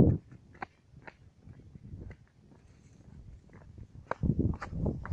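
Footsteps crunch and swish through dry grass.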